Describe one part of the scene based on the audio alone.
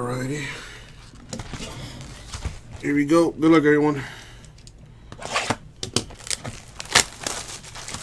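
Hands tap and knock on a cardboard box.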